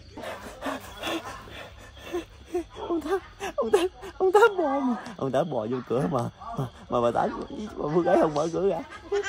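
A young man laughs and talks with excitement close by.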